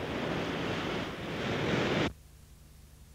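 Rapids of water roar loudly.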